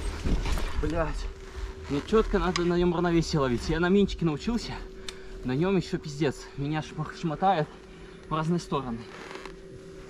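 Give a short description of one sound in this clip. A young man talks calmly close by.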